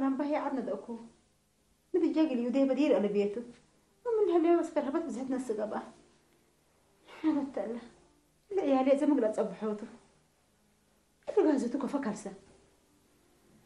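A middle-aged woman speaks emotionally, close by, in short bursts.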